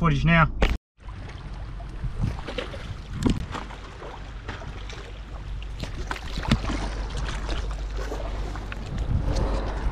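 Fingers rub and knock against the microphone.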